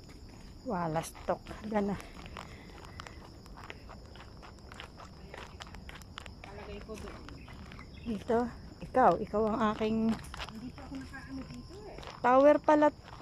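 Footsteps scuff and tap on a stone path.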